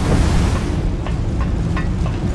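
Boots clank on metal ladder rungs.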